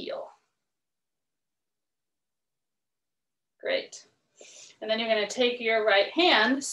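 A woman speaks calmly and clearly through a close microphone.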